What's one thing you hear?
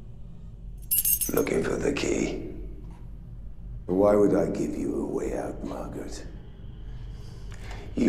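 A middle-aged man speaks in a low, menacing voice.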